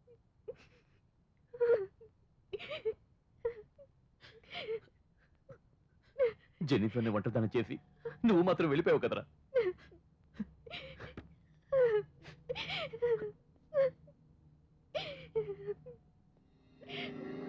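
A young woman sobs and whimpers close by.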